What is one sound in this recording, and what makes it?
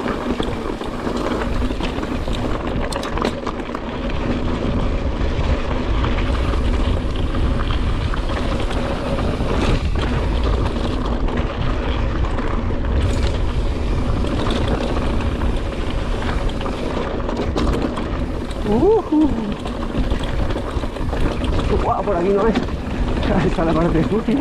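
Wind buffets loudly, rumbling low.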